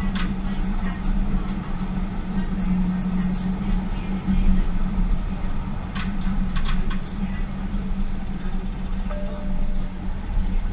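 A train rumbles steadily along the rails with a low engine hum.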